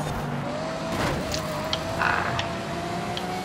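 Metal scrapes and grinds against a roadside barrier.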